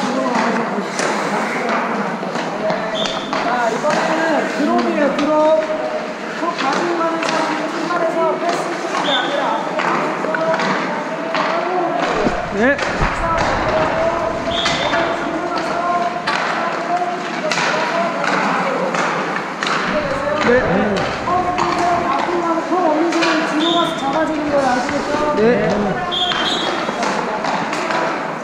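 A man talks loudly in a large echoing hall.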